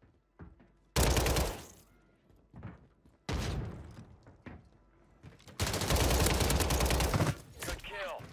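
Loud bursts of rapid gunfire ring out.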